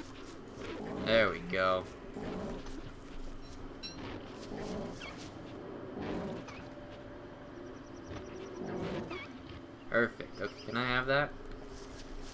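A large animal grunts and bellows in low, drawn-out calls.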